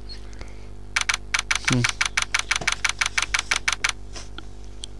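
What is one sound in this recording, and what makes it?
Short electronic blips tick rapidly as text types out.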